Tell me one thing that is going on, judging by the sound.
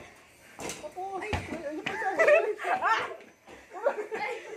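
A young boy laughs loudly.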